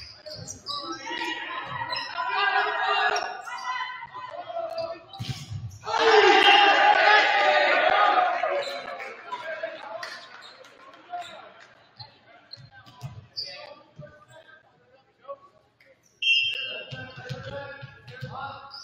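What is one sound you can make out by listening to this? A volleyball is struck hard with a slap.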